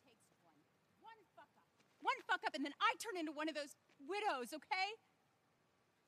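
A woman speaks firmly and with emotion.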